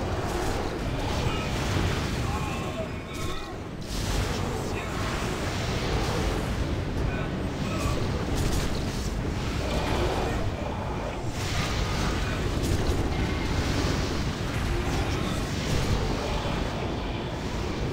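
Spell effects and weapon hits crackle and clash in a game battle.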